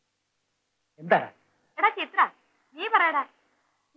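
A man speaks in a whining, pleading voice.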